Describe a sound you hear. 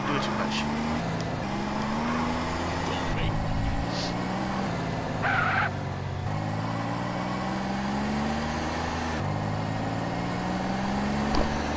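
A car engine hums steadily, rising and dropping in pitch as the car drives.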